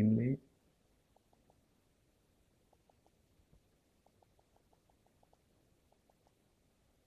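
Soft keyboard clicks tick from a phone as its keys are tapped.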